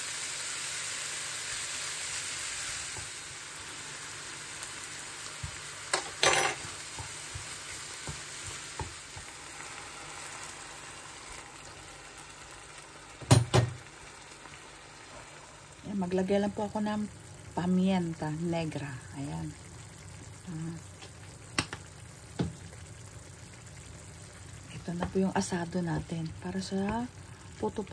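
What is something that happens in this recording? Ground meat sizzles softly in a frying pan.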